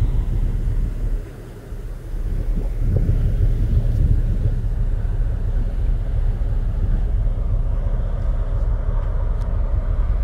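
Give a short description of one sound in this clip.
Wind rumbles and buffets across the open deck of a moving ferry.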